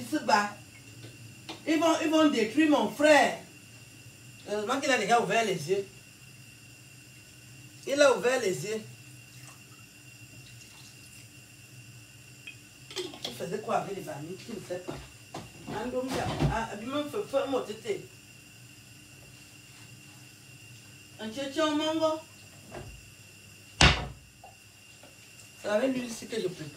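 Dishes clatter in a sink.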